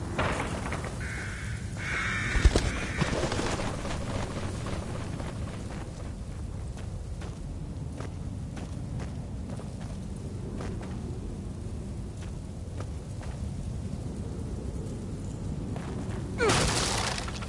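Footsteps crunch softly through grass and undergrowth.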